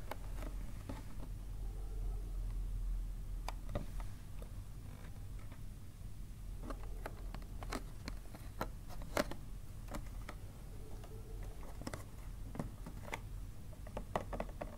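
Plastic packaging crinkles and crackles in hands.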